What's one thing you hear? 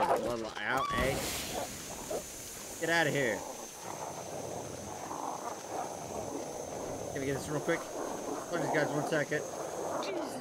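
A flare ignites and hisses steadily.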